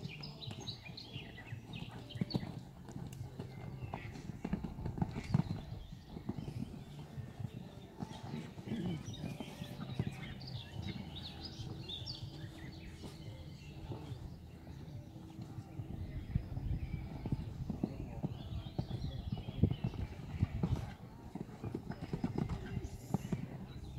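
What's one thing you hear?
A horse canters on sand, its hooves thudding.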